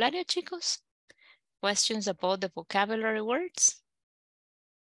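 A woman speaks clearly through an online call.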